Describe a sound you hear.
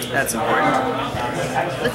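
Playing cards riffle and shuffle in a hand.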